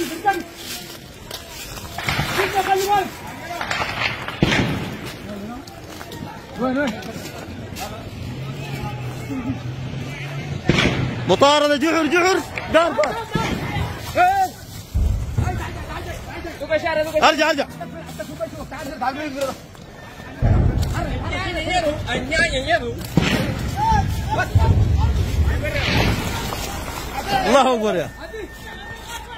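Men shout excitedly close by.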